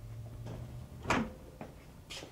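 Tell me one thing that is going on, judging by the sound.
A washing machine door clicks open.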